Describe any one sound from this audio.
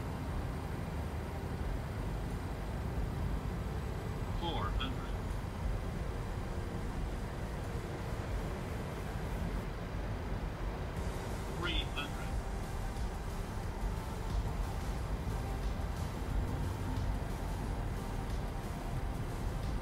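A steady low rumble of jet engines drones throughout.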